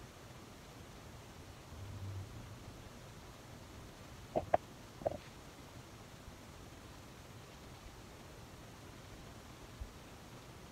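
A makeup sponge dabs softly against skin.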